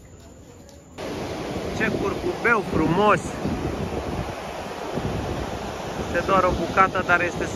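Waves wash steadily onto a beach outdoors.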